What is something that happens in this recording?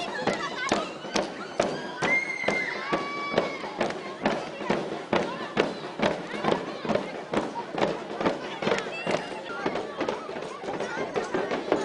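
A drum beats in a steady rhythm outdoors.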